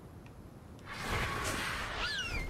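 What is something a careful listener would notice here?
A large bird's wings flap with a rushing whoosh.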